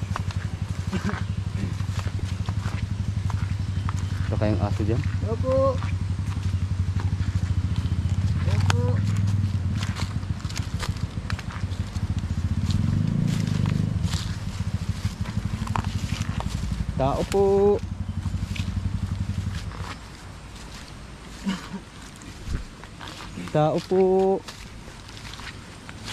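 Footsteps crunch through dry leaves and grass.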